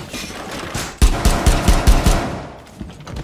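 Rapid gunshots fire close by in a burst.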